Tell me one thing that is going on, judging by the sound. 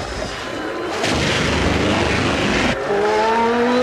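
An engine roars loudly as flames blast from its exhausts.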